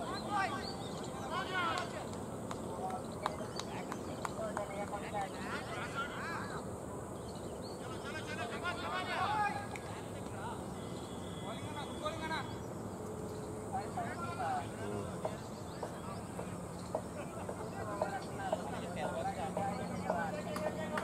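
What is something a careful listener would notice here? Men talk and call out across an open field outdoors.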